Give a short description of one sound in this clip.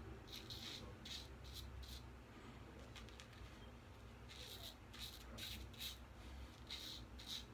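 A razor scrapes short strokes through stubble close by.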